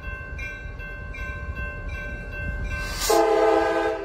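A crossing bell rings rapidly.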